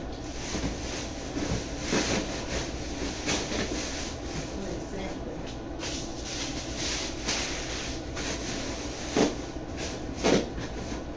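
Packing paper rustles and crinkles as it is handled.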